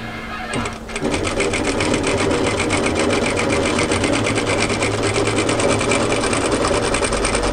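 A sewing machine runs fast, stitching with a rapid steady whir.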